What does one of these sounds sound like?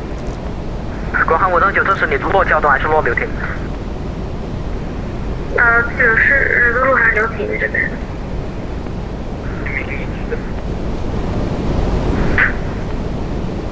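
A steady low rumble of aircraft engines and rushing air drones on.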